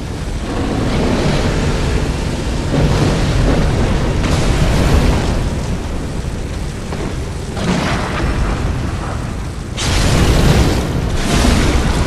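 A beast growls and snarls.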